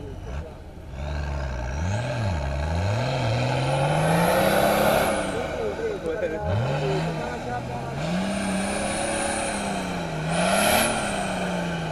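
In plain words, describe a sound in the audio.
An off-road vehicle's engine revs hard and roars, rising and falling.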